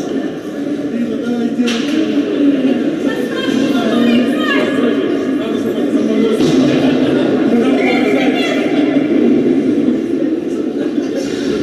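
Ice skates scrape and glide across an ice rink.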